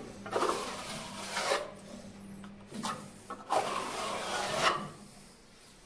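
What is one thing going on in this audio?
A trowel scrapes plaster across a wall.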